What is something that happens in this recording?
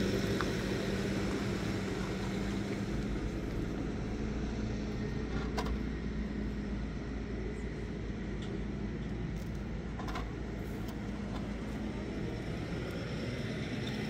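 A hand tool scrapes and knocks against soil and a pipe.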